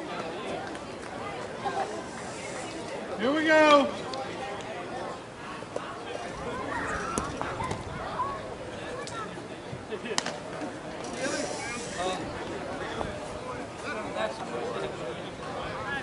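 Men and women chatter and call out across an open field outdoors.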